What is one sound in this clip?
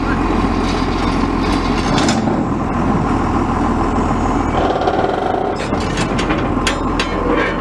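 A heavy metal mower deck clanks and rattles as it is raised.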